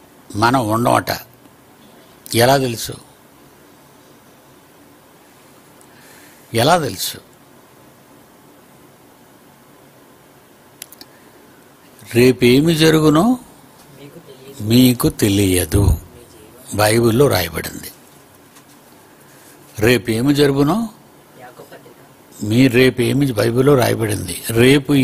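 An elderly man speaks slowly and forcefully into a microphone, with long pauses.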